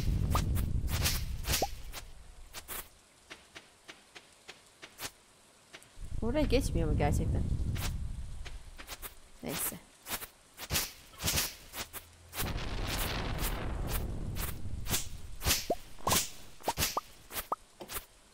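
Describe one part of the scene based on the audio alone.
Light footsteps patter quickly on grass.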